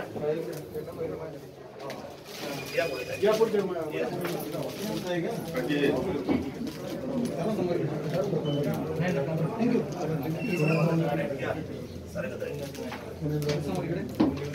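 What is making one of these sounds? Several men and women talk over one another nearby.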